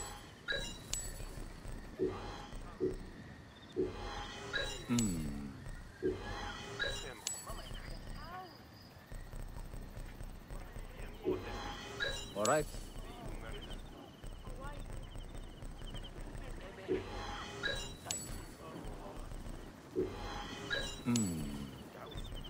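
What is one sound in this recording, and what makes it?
Short bright chimes ring now and then.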